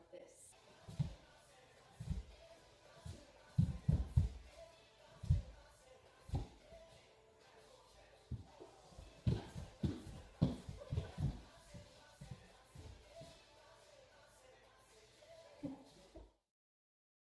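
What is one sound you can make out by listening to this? Feet thump and stomp on a wooden floor.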